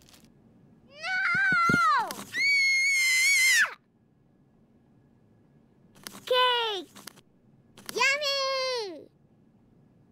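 A young boy shouts loudly and angrily.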